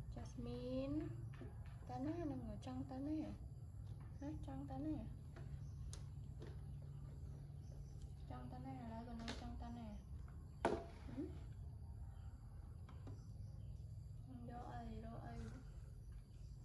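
A young woman speaks gently and softly up close.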